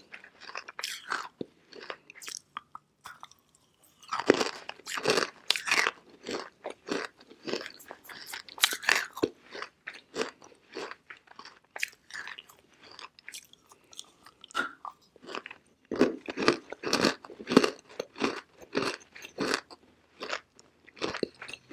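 Crumbly pieces crunch and crackle as a young woman chews close to a microphone.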